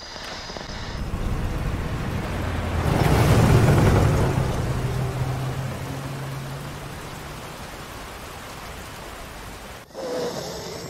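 A heavy engine rumbles closer, swells loudly and slowly fades.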